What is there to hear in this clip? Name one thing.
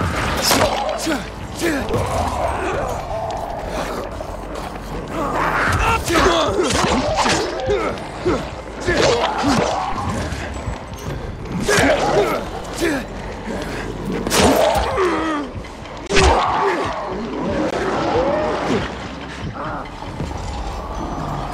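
A blade slashes and thuds into flesh again and again.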